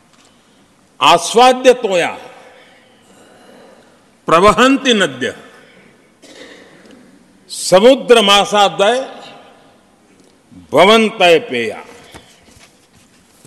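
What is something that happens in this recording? An elderly man speaks slowly and deliberately into a microphone in a large echoing hall.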